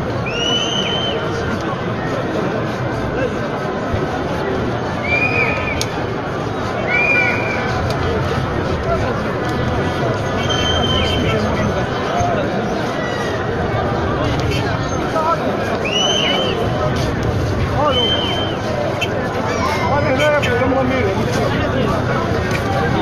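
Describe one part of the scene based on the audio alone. A large crowd of men and women chants and shouts loudly outdoors.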